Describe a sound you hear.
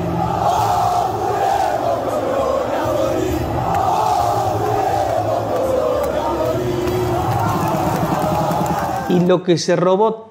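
A large stadium crowd sings loudly together.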